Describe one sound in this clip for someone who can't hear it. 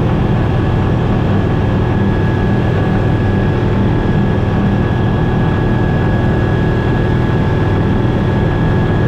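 Wind rushes past the cockpit.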